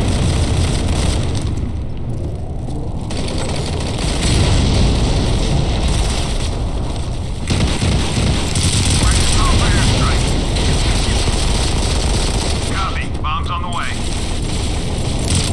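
Gunshots fire in rapid bursts, loud and close.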